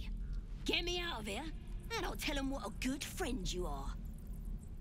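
A woman speaks in a raspy, pleading voice.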